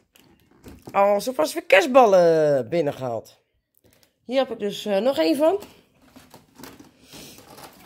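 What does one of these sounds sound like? A plastic box crinkles as it is handled.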